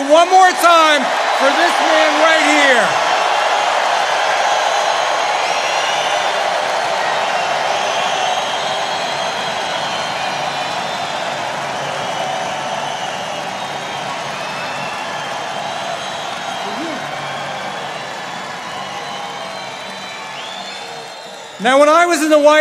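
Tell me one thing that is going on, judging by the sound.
A large crowd cheers and applauds loudly, then slowly quietens.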